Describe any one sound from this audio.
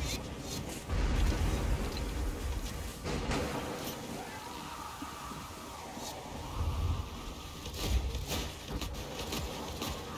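A crossbow fires with sharp snaps.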